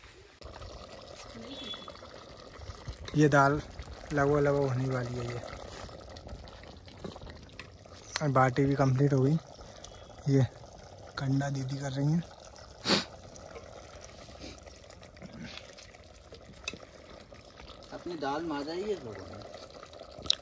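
A metal ladle scrapes and clinks inside a cooking pot.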